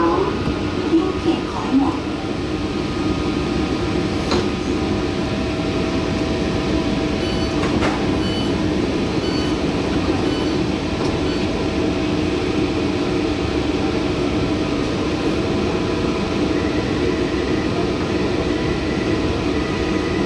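A train's motors hum steadily.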